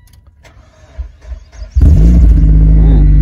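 A car engine starts with a loud roar.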